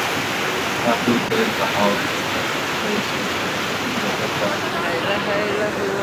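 A rushing mountain stream roars steadily over rocks close by.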